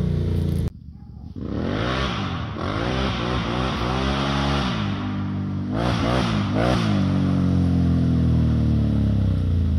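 A four-wheeler engine roars in the distance, rising and falling as it accelerates.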